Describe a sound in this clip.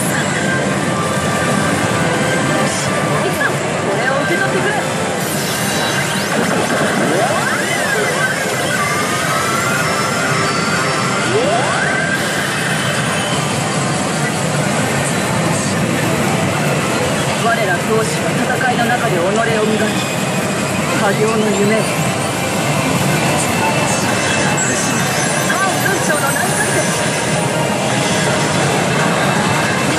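A gaming machine blares loud electronic music and sound effects.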